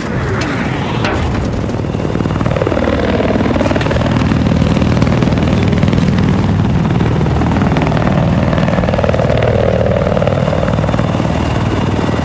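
Helicopter rotor blades thump steadily as a helicopter flies low.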